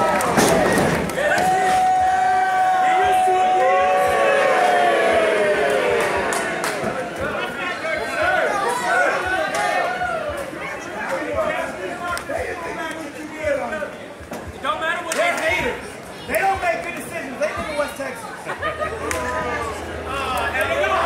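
A crowd in a large hall cheers and shouts.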